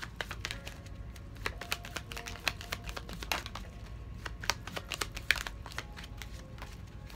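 Paper envelopes rustle and crinkle as hands sort them.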